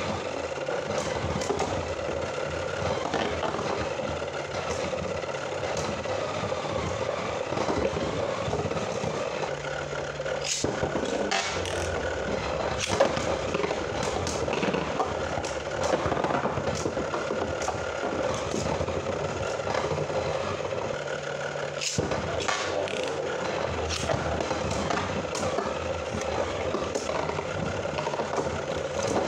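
Spinning tops clack sharply against each other.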